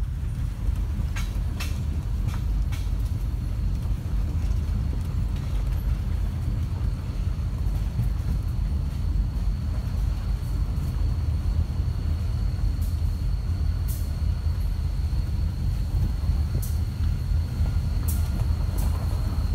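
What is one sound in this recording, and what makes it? A freight train rumbles past close by.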